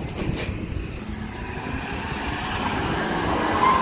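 A pickup truck engine rumbles as the truck passes close by.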